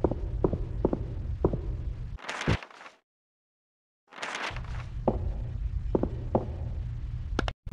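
Footsteps fall at a steady walking pace.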